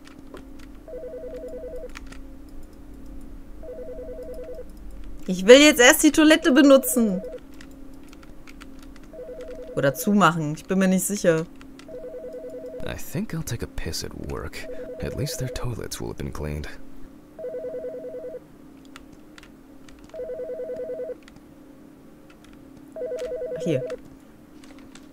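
A telephone rings in short, repeated electronic bursts.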